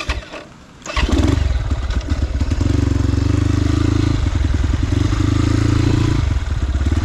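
A dirt bike engine roars loudly and steadily.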